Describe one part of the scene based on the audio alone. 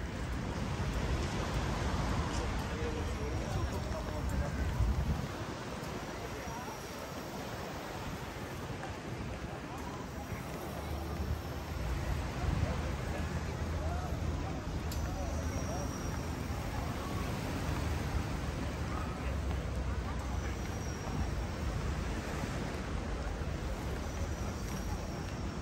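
A crowd of people chatters faintly in the distance.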